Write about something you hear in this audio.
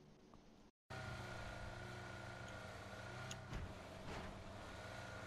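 A car engine hums while driving.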